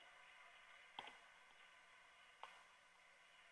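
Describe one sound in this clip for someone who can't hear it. Equipment clicks and knocks as a man adjusts it.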